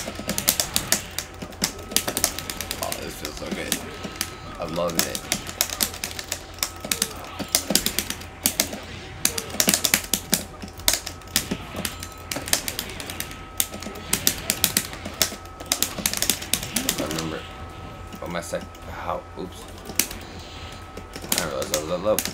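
Upbeat game music plays steadily.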